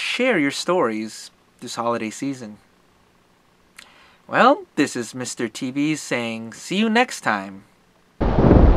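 A man talks calmly and close to the microphone.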